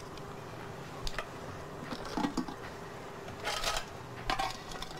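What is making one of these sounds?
Chopsticks clink and scrape against a metal pot.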